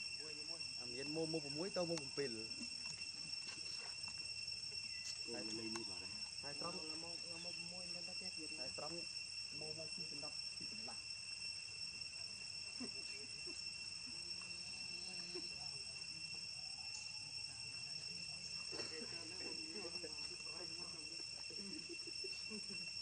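A baby monkey squeals and whimpers close by.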